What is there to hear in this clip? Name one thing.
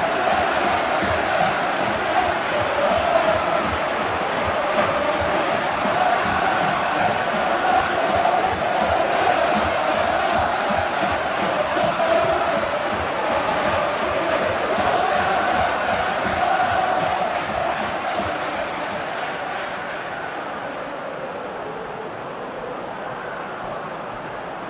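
A large stadium crowd cheers and chants loudly, then quiets down.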